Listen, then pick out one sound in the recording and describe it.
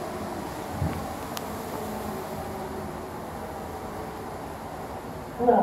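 An elevator hums steadily as it travels.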